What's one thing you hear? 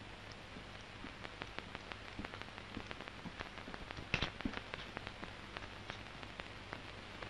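Footsteps tap lightly on a hard floor.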